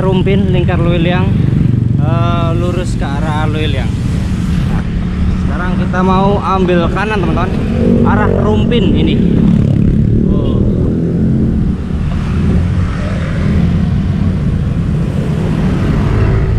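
Motorbike engines hum in nearby traffic.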